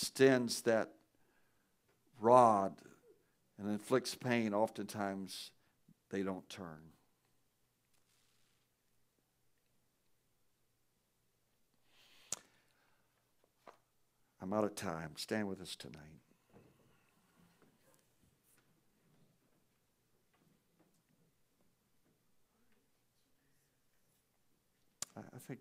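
A man speaks calmly over a microphone in a large echoing room, with long pauses.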